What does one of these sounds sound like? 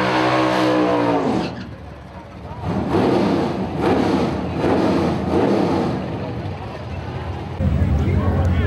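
A race car engine revs hard in loud bursts.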